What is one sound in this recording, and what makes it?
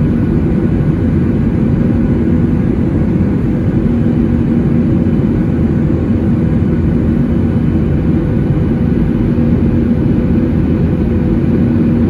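A jet engine roars steadily with a deep, constant hum inside an airliner cabin.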